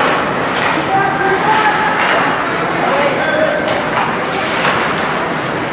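Spectators shout and cheer in the stands.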